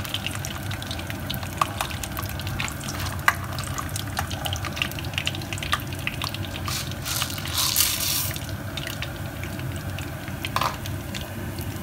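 A metal spoon stirs peanuts in a pan, scraping and clicking.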